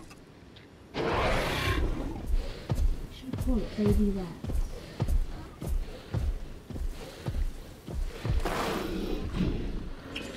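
A large dinosaur roars loudly.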